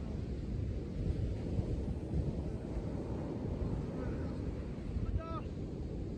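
Waves crash and roll onto a beach.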